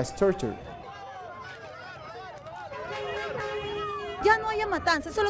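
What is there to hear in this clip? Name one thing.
A crowd of people shout and chatter outdoors.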